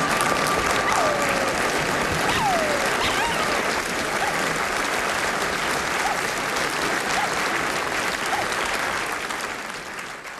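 A dog howls with its head raised.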